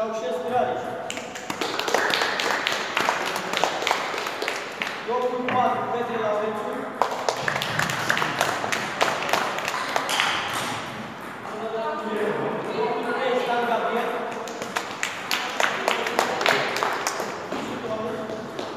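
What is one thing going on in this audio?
Children clap and cheer in an echoing hall.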